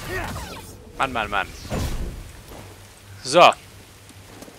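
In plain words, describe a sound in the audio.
A man speaks close to a microphone in short remarks.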